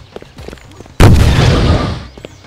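A rocket explodes with a loud, rumbling blast that slowly fades.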